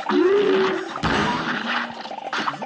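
A heavy cartoon impact thumps once.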